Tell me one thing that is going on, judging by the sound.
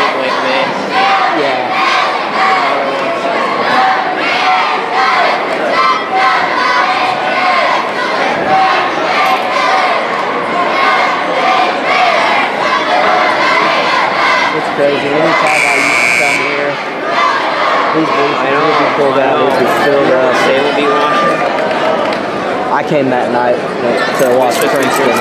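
A large crowd chatters and cheers, echoing in a big hall.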